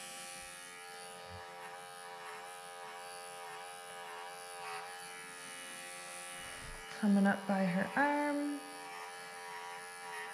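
Electric clippers hum steadily up close.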